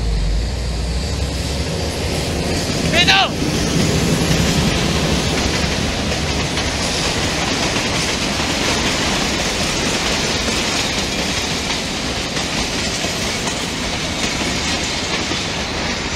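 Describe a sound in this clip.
A passing train rumbles and clatters along the rails close by.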